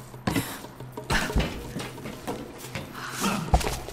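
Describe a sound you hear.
Footsteps thud on the wooden rungs of a ladder.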